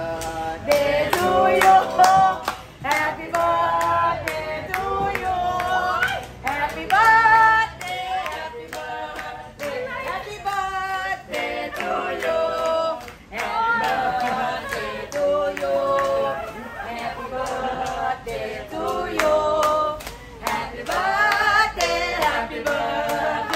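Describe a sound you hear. Young women sing together close by.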